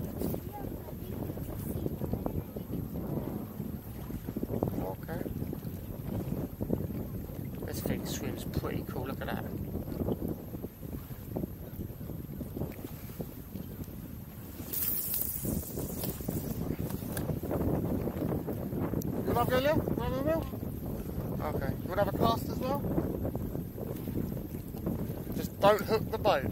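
Water laps against an inflatable boat.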